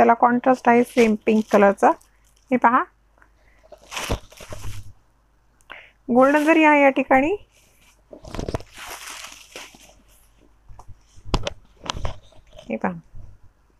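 Silk fabric rustles as it is unfolded and shaken out.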